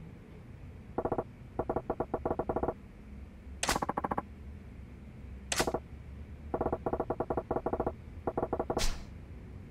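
Rapid soft electronic blips tick in quick bursts.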